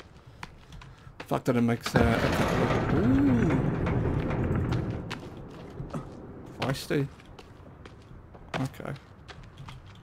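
Footsteps scuff over rock in an echoing cave.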